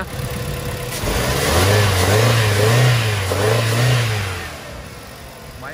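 A car engine revs loudly and then settles back down.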